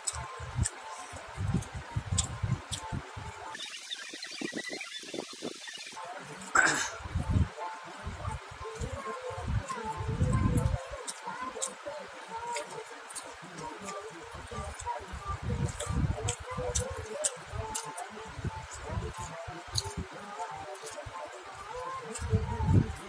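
Fingers squish and scrape food on a metal plate.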